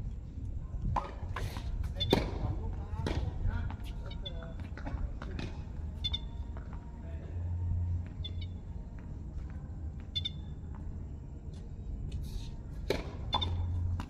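Tennis balls are struck with rackets.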